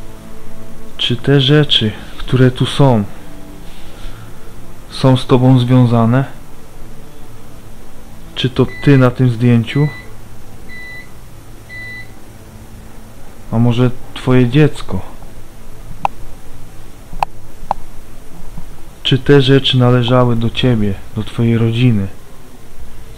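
A man speaks nearby in short bursts.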